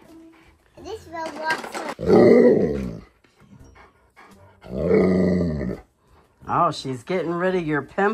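A husky howls and grumbles loudly.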